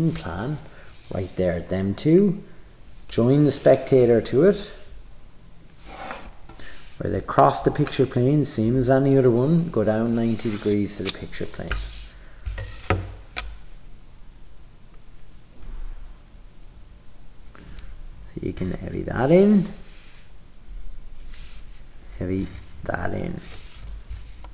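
A pencil scratches across paper.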